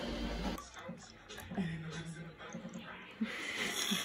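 Juice pours from a carton into a glass.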